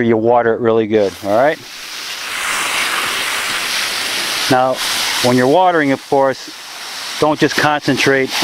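Water sprays from a hose with a steady hiss.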